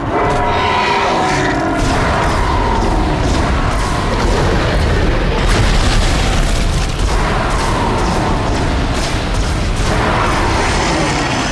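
A monster shrieks and growls.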